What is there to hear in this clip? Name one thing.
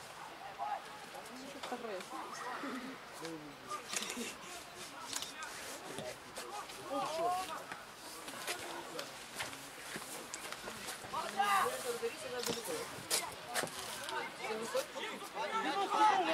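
Young men shout and call to each other across an open pitch outdoors.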